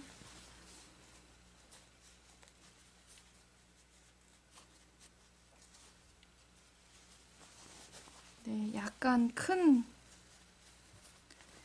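Fabric rustles softly as hands handle it.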